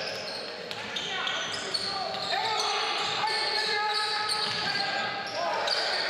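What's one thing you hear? A basketball bounces on the floor with dull thuds.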